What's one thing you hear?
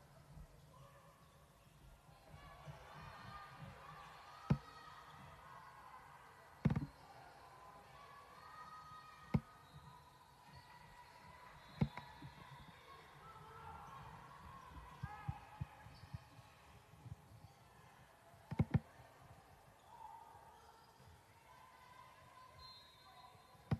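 Players and spectators shout and call out across the gym.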